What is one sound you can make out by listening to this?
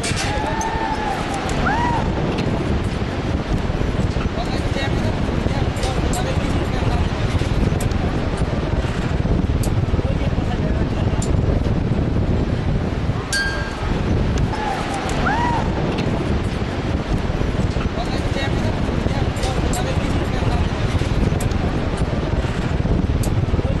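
Wind rushes and roars loudly and steadily against the microphone.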